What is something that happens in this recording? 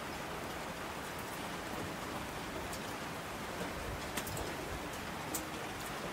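Water rushes down in torrents.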